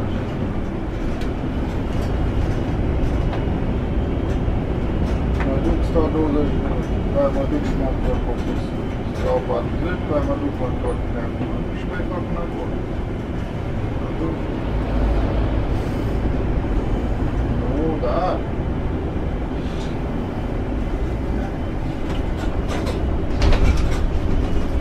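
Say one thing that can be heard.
Small clicks and rattles sound inside the bus.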